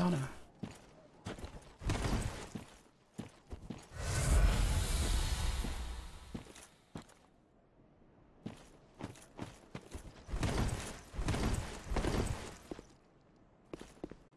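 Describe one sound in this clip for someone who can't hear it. Heavy armored footsteps thud and clink on stone.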